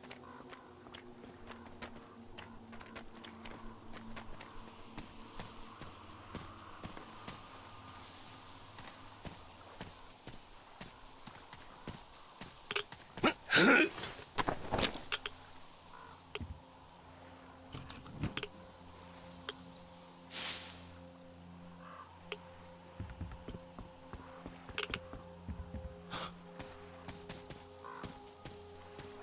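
Footsteps crunch on snow and mud.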